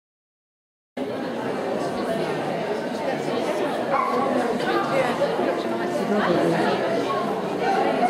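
A woman calls out commands to a dog in a large echoing hall.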